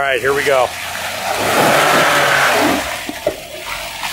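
Tyres splash and squelch through mud.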